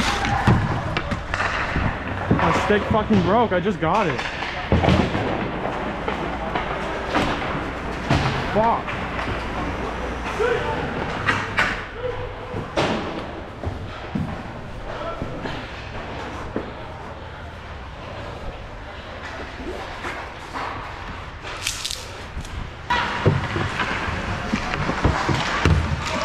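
Hockey sticks clack and pucks knock on ice in a large echoing rink.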